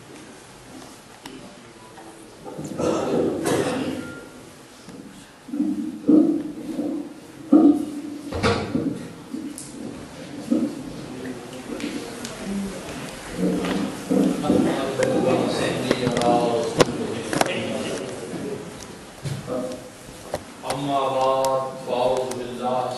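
A crowd of men chant together in a large echoing hall.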